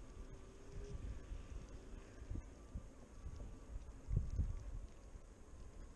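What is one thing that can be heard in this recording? Wind rumbles and buffets against a microphone while riding outdoors.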